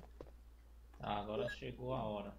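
A game menu opens with a loud electronic sound.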